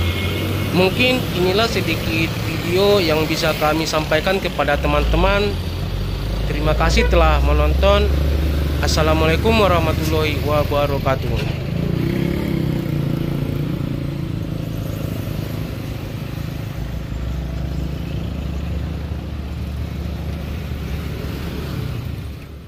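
Vehicle engines idle with a low, steady rumble nearby.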